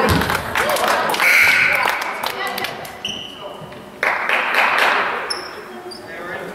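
Spectators cheer and clap loudly in an echoing gym.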